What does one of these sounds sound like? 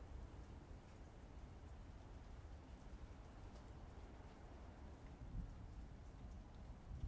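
Keys on a laptop keyboard click softly as someone types.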